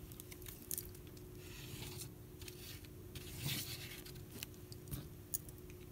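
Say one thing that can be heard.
A paint tube squeezes out paint with a soft squelch.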